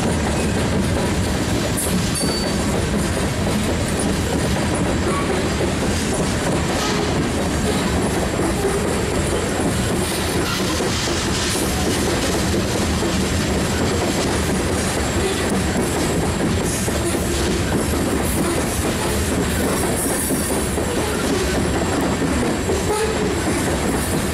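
Freight cars rumble and clatter steadily past close by on the rails.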